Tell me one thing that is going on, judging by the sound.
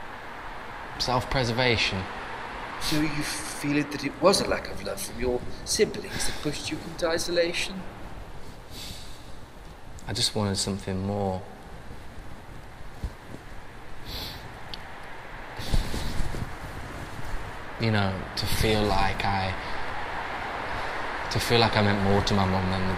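A young man talks calmly and casually close by.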